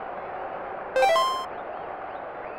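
An electronic chime sounds once.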